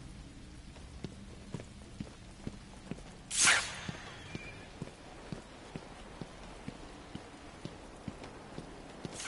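Heavy footsteps crunch slowly over loose rubble.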